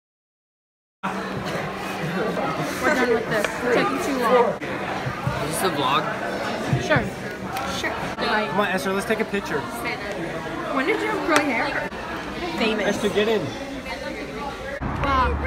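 Young men and a young woman talk excitedly close by.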